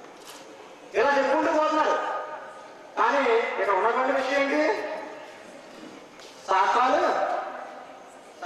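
A young man speaks into a microphone through a loudspeaker, in short bursts with pauses.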